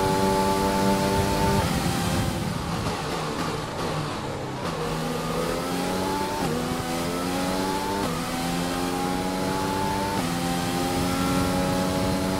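A racing car engine whines loudly, dropping in pitch as it brakes and rising again as it shifts up through the gears.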